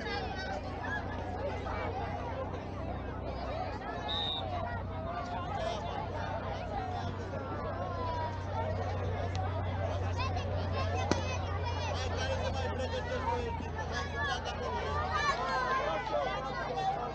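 A crowd chatters in the distance outdoors.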